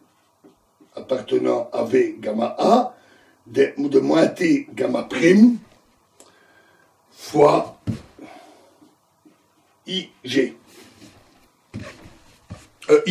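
A man speaks calmly, close by, in short phrases with pauses.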